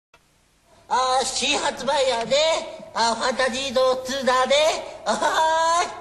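A man shouts excitedly through a loudspeaker.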